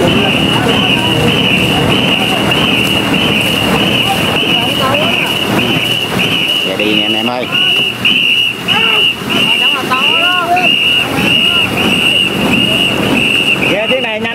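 Many paddles splash through water in a fast, steady rhythm.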